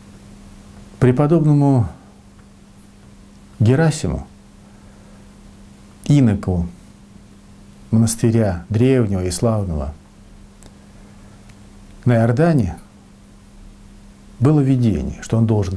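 An elderly man speaks calmly and slowly in short phrases, close to the microphone.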